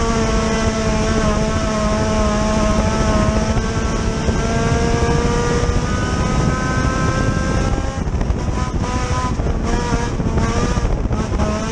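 A race car engine roars loudly up close, its pitch rising and falling as the throttle changes.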